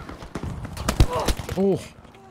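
Gunshots crack in a video game.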